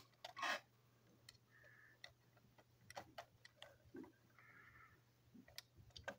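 A screwdriver scrapes and clicks against a small screw in plastic.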